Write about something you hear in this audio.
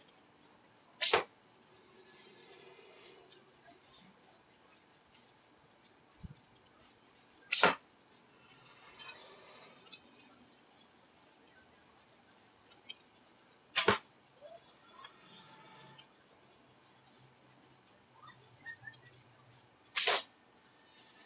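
A bowstring snaps sharply as an arrow is loosed, several times.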